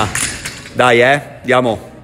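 A barbell with plates clanks as it is lowered to the floor.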